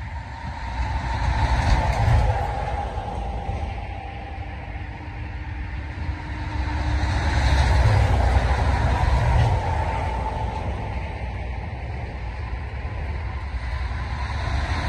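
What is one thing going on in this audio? Vehicles rush past loudly on a nearby highway, swelling and fading.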